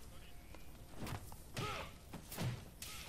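Heavy punches land with loud thuds.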